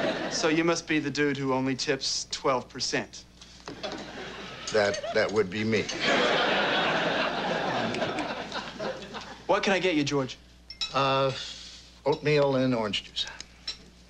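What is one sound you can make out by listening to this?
A young man speaks calmly and clearly.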